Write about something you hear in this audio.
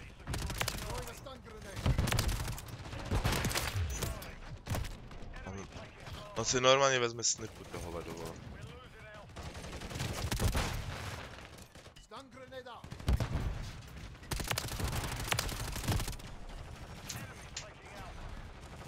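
Gunfire bursts rapidly in loud volleys.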